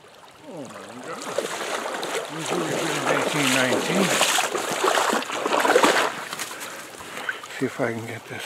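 Water splashes loudly as a man wades through a shallow stream.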